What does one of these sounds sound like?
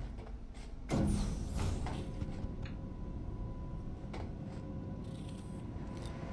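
An elevator hums low and steady.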